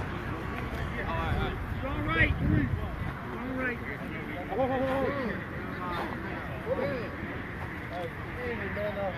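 Several men talk and call out outdoors at a distance.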